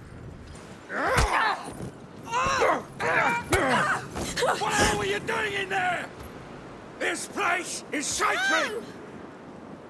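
A man shouts angrily and roughly, close by.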